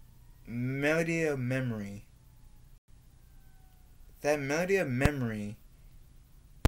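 A young man speaks close by, with a sing-song, drawn-out voice.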